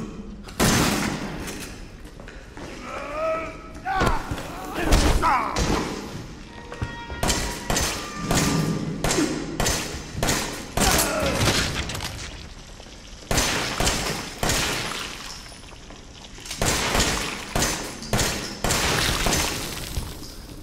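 Gunshots boom loudly in quick succession.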